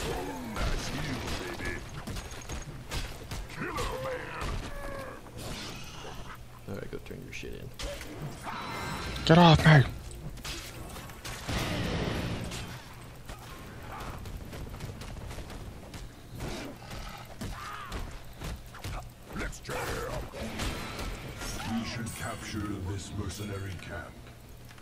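Fighting sound effects clash and crack in quick bursts.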